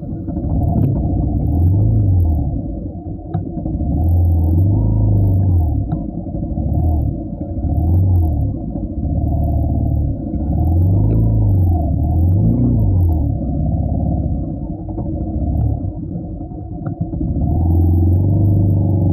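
A motorcycle engine hums steadily up close, its low drone rising and falling.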